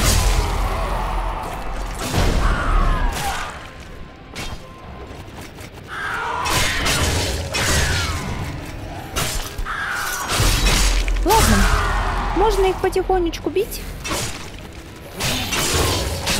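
Swords clash and slash with sharp impacts.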